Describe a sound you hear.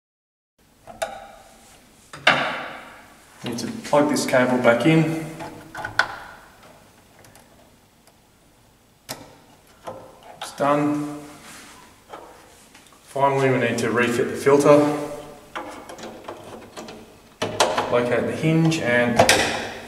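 Plastic parts click and rattle as hands work inside a device.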